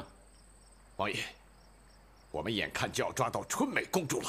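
A middle-aged man speaks calmly and earnestly.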